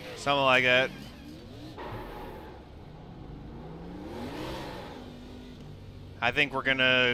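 A race car engine hums and revs.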